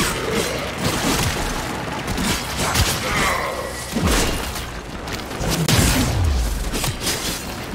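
An energy weapon fires with a crackling beam.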